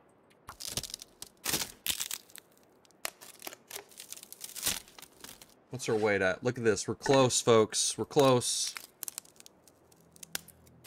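Twigs rustle and snap as sticks are gathered by hand.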